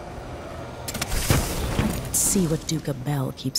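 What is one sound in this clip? A magic blast whooshes and crackles.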